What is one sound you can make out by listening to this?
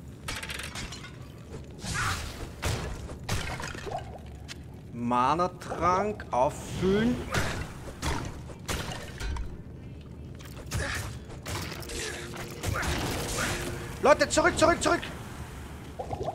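Weapons and spells strike with sharp bursts and crackles.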